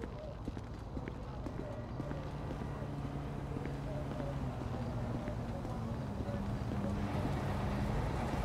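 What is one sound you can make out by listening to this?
Footsteps tap on brick paving at a walking pace.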